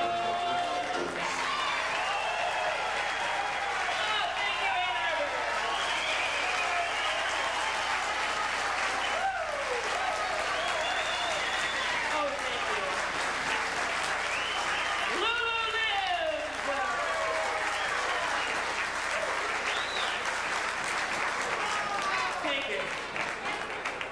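A crowd of older men and women chatter and laugh loudly nearby.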